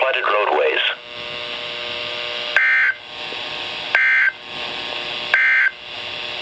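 A radio loudspeaker hisses with steady static.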